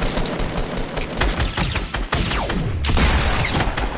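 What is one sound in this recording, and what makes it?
A rifle fires several shots.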